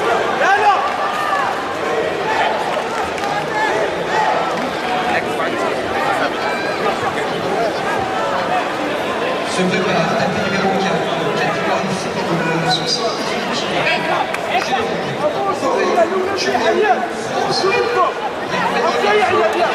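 A large crowd cheers and chatters, echoing in a big arena.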